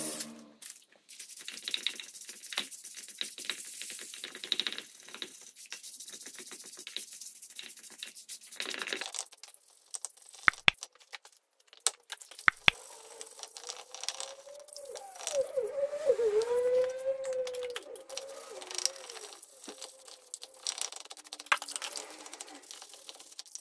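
A stiff brush scrubs wet stone with rough, rhythmic strokes.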